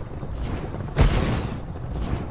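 A heavy structure drops into place with a loud thud.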